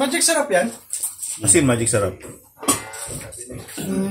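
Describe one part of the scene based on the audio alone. A lid clinks onto a metal pot.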